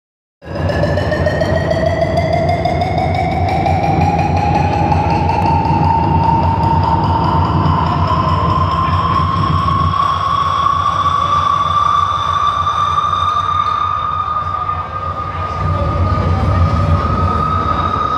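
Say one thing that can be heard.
Loud music with a deep pounding beat plays over loudspeakers.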